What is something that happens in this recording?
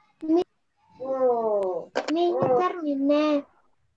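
A child speaks loudly with animation over an online call.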